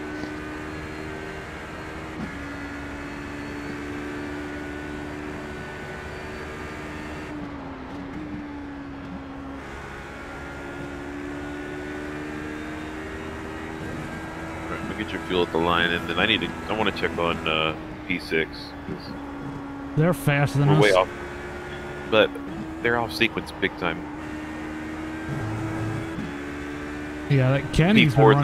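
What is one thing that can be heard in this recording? A racing car engine drones and revs steadily as gears shift.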